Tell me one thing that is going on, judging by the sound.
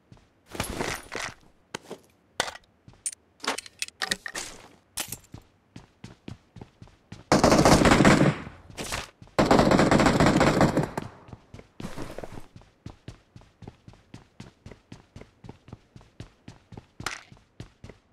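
Items click as a game character picks them up.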